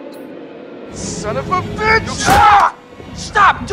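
A young man shouts angrily.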